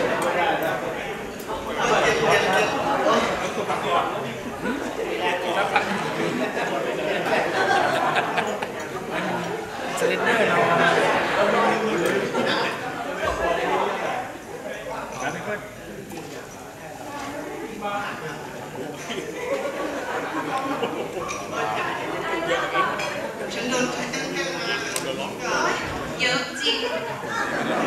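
A young woman talks with animation through a microphone in a large echoing room.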